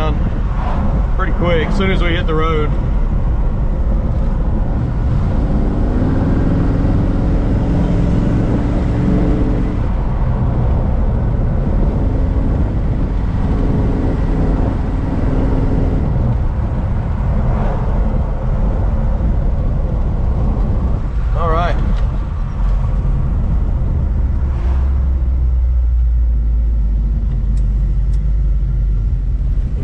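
Wind and road noise rush past an open car window.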